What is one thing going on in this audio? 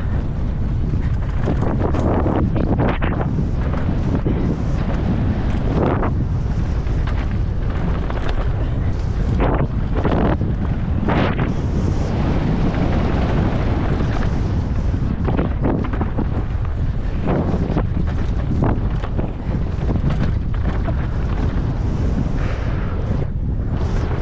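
Bicycle tyres rumble and crunch over a dirt trail.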